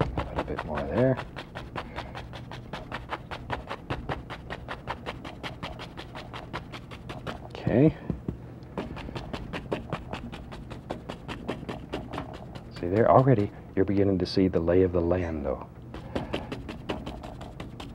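A stiff brush taps rapidly and steadily against a canvas.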